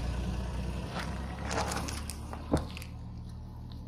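Hard candies crack and scatter under a tyre.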